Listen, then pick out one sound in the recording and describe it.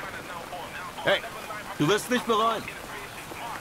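A man shouts out a short call.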